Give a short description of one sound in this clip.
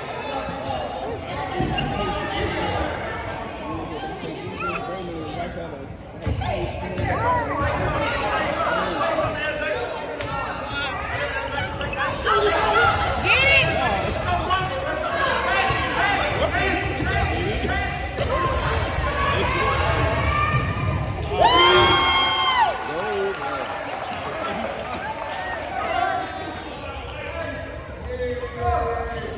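A crowd of young people chatter and call out in a large echoing hall.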